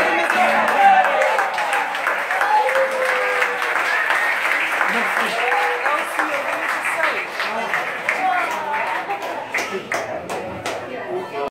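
A crowd of men and women talks and cheers loudly nearby.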